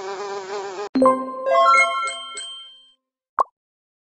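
A short cheerful jingle plays.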